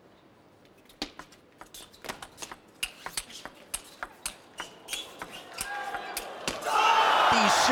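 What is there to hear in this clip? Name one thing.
A table tennis ball is knocked quickly back and forth with sharp clicks and bounces on the table.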